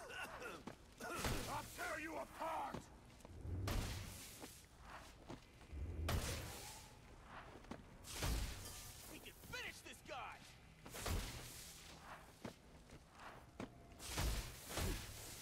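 Heavy punches and kicks land with dull thuds, again and again.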